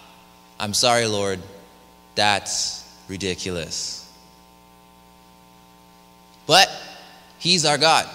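A young man speaks with animation into a microphone in a reverberant hall.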